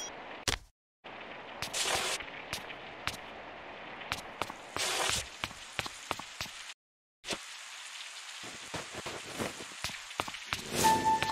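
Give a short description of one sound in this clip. Rain falls steadily with a soft hiss.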